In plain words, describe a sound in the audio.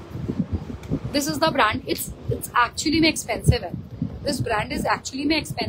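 A young woman talks animatedly, close by.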